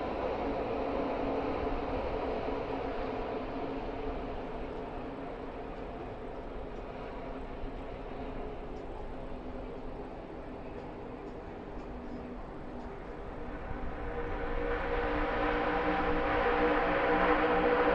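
A pack of race trucks roars around the track, with engines droning loudly.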